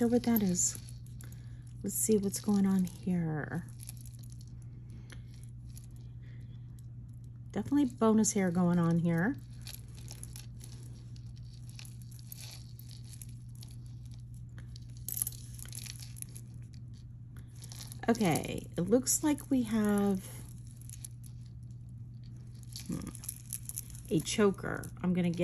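Glass beads click and clink softly as hands handle them.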